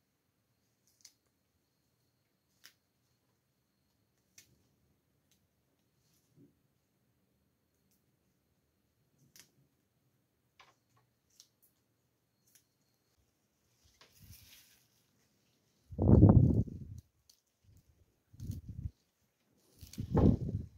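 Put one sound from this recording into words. Fresh green stems snap and crack softly between fingers.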